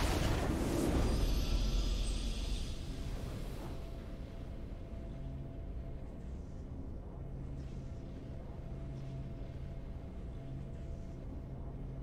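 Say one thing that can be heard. A triumphant musical fanfare plays and then holds softly.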